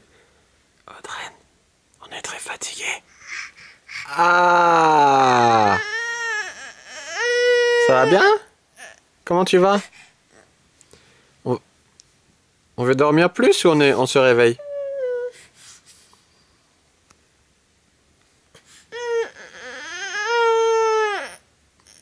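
A baby cries and whines loudly close by.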